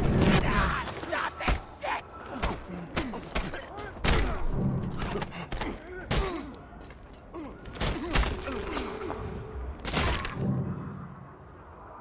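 Heavy punches and blows land in a brawl.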